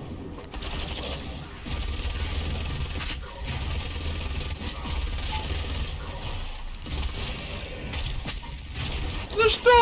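Rapid gunfire blasts and roars in heavy bursts.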